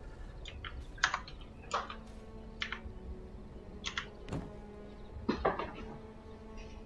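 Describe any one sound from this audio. Short clicks and chimes sound.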